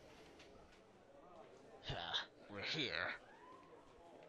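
A crowd murmurs and footsteps shuffle in a large echoing hall.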